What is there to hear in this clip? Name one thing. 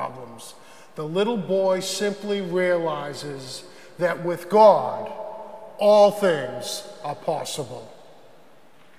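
A middle-aged man speaks with animation into a microphone in an echoing hall.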